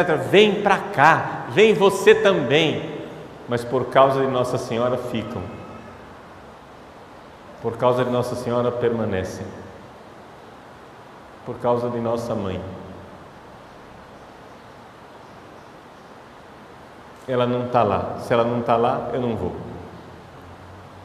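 A middle-aged man speaks with animation into a microphone, pausing often.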